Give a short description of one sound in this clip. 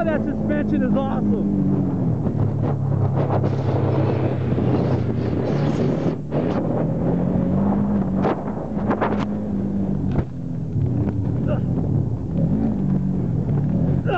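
Tyres rumble and crunch over rough dirt.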